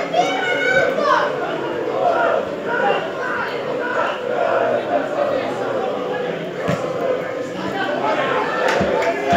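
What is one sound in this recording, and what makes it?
Men shout to each other across an open outdoor field.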